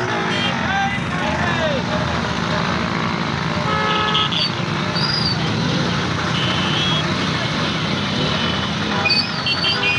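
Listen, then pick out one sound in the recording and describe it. Motorcycle and car engines rumble steadily in slow road traffic, outdoors.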